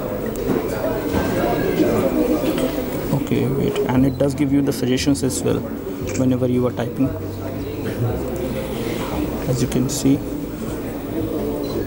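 A phone's touch keyboard clicks softly as keys are tapped.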